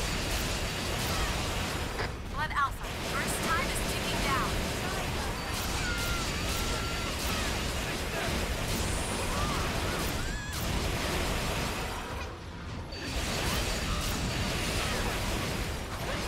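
Energy shots blast and crackle repeatedly.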